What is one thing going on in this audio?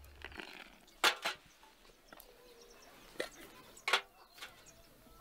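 Small glasses clink against a metal tray.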